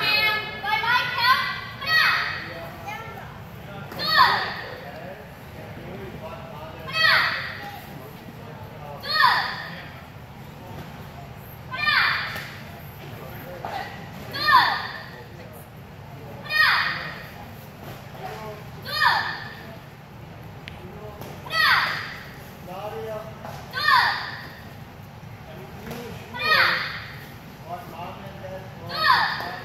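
Young students shout together sharply and loudly, again and again, in a large echoing hall.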